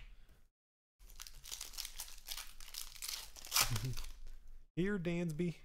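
Foil wrappers crinkle and rustle.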